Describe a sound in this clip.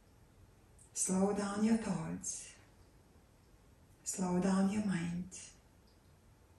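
A woman speaks calmly and clearly, close by, in two short phrases.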